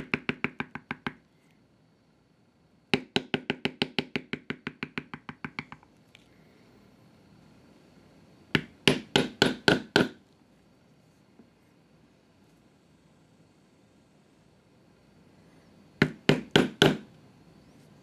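A mallet taps a metal stamping tool into leather over a stone slab in rapid bursts.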